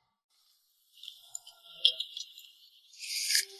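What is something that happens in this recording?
Tea pours into a small cup.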